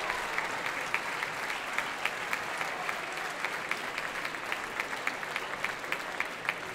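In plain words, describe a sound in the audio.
Many people clap their hands in a steady rhythm.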